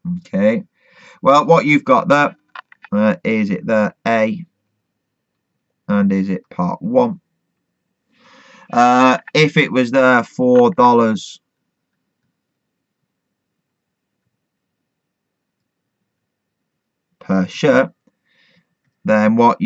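A man speaks calmly and clearly into a close microphone, in bursts with pauses.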